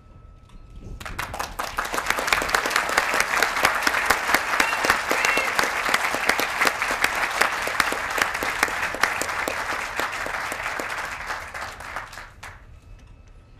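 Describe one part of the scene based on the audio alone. An audience applauds loudly outdoors.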